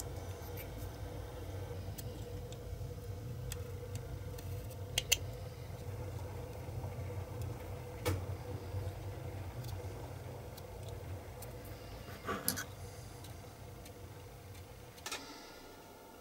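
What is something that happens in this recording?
A craft knife scrapes and shaves small plastic pieces.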